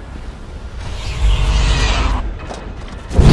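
A portal activates with a low whooshing hum.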